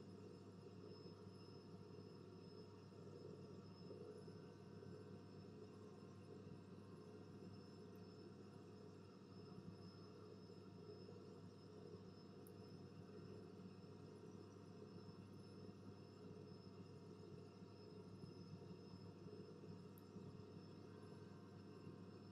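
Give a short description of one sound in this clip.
Jet engines drone steadily in flight.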